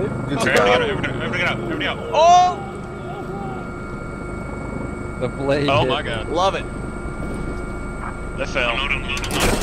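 A helicopter engine hums steadily.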